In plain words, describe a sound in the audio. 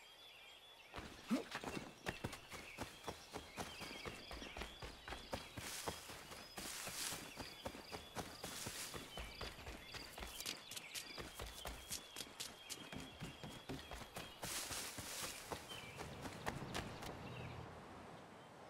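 Footsteps run quickly over grass and wooden boards.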